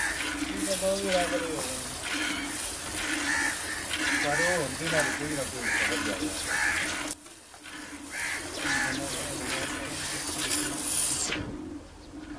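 Milk squirts rhythmically into a metal pail.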